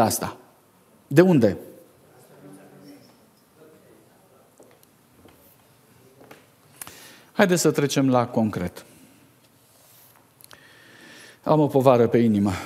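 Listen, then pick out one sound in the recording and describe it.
A middle-aged man speaks calmly into a microphone in short bursts with long pauses.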